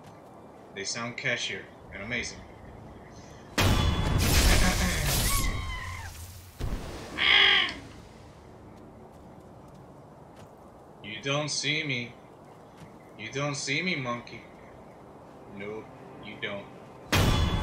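A young man talks casually into a microphone.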